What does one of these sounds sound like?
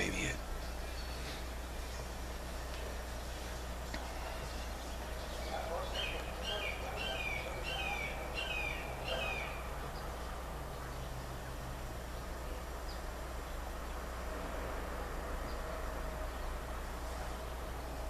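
An older man speaks calmly and quietly, close by.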